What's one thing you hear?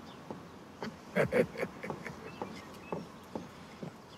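Footsteps tap on a wooden deck.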